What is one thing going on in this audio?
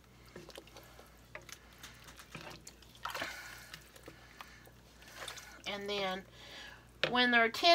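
A spoon stirs mushrooms in a pot of broth.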